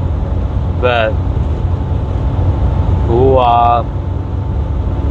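A truck engine rumbles low and steady inside the cab.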